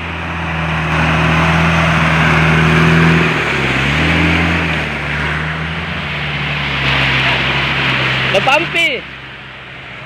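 Tyres churn and splash through thick mud.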